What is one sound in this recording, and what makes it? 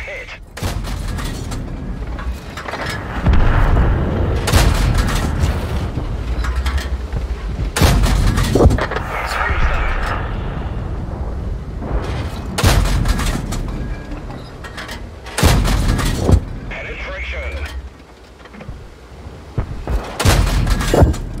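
A tank engine rumbles low and steady.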